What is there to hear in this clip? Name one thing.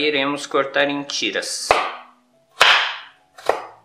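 A knife chops carrot on a wooden board with sharp knocks.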